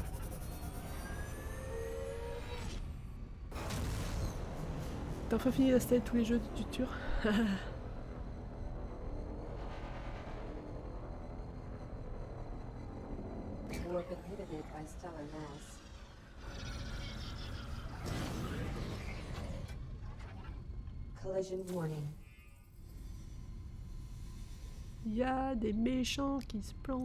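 A spaceship engine hums and roars steadily.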